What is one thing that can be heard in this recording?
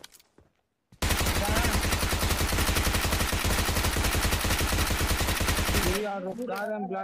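A rifle fires a long rapid burst of shots.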